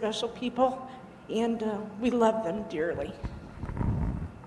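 An elderly woman speaks aloud in a large room.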